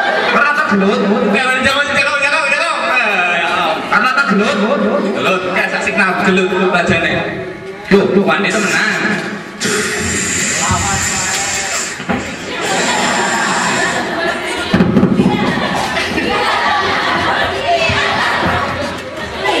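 An older man speaks through a microphone and loudspeaker.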